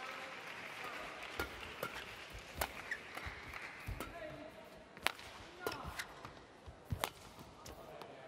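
A shuttlecock is struck sharply back and forth by rackets in a large echoing hall.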